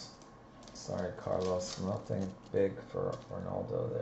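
A plastic wrapper crinkles as it is torn open.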